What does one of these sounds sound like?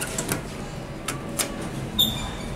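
A finger clicks a lift button.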